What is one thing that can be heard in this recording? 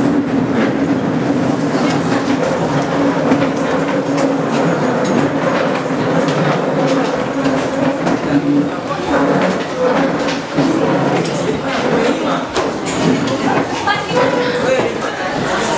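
Teenage boys and girls chatter and talk over one another nearby.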